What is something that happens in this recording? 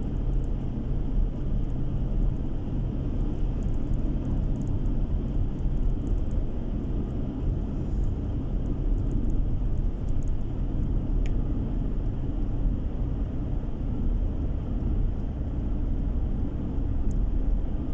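Tyres roll on smooth asphalt with a low rumble.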